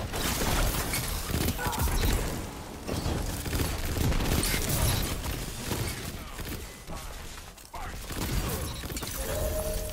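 Energy guns fire rapid bursts of zapping shots.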